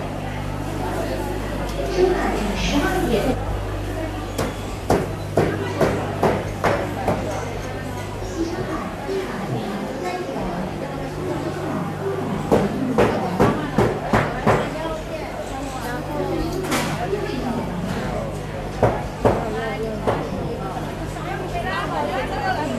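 A crowd of people murmurs and chatters in an echoing indoor hall.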